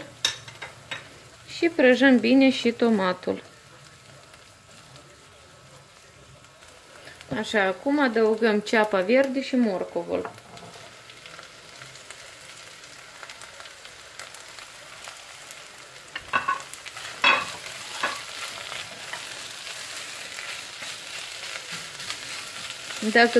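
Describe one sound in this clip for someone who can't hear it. A spatula scrapes and stirs food in a pot.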